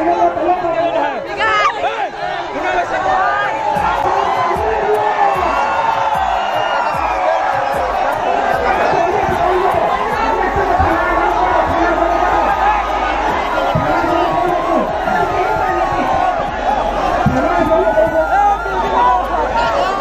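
A large crowd of young men cheers and shouts loudly close by.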